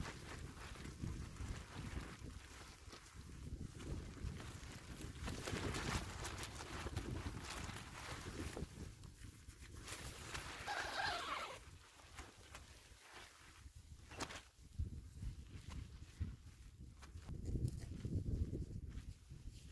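Tent fabric flaps and rustles in the wind.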